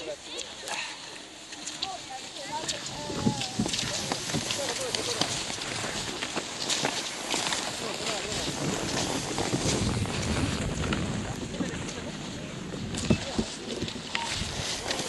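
Ski poles plant with sharp clicks on the snow.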